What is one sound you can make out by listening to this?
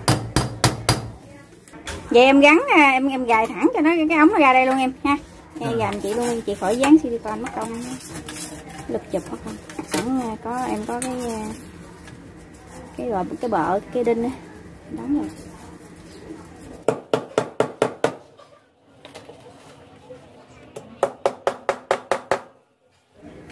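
A man hammers sharply on a hard surface.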